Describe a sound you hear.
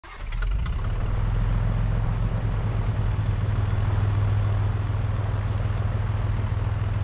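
A small propeller plane's engine drones steadily as it taxis.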